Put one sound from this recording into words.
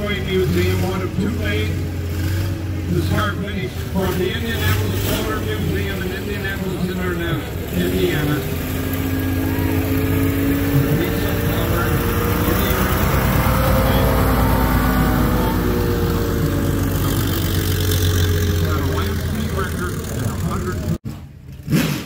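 A vintage diesel race car rumbles as it drives past.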